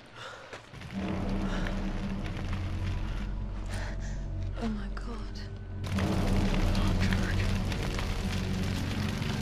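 Flames roar steadily from a burning wreck.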